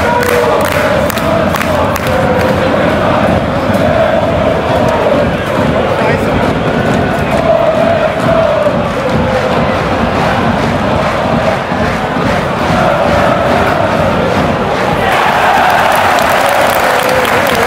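A large stadium crowd chants loudly in unison.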